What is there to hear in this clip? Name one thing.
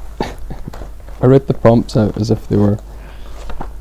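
A man speaks calmly close by, through a microphone.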